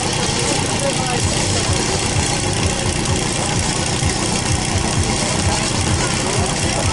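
A petrol pump engine runs loudly nearby, chugging rapidly.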